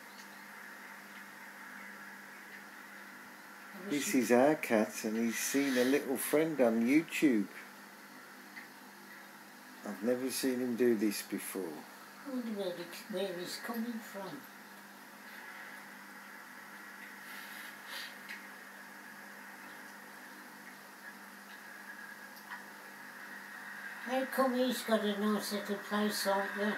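A television plays in the room.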